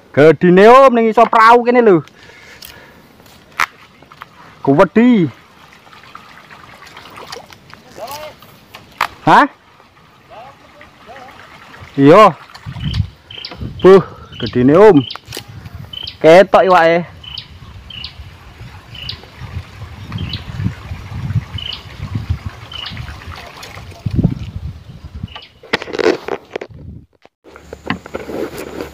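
Water laps gently against a small wooden boat.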